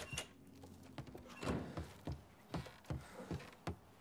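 Footsteps clump down wooden stairs.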